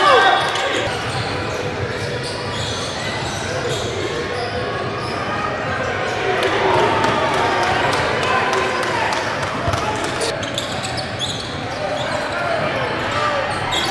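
A crowd of spectators murmurs and calls out in an echoing gym.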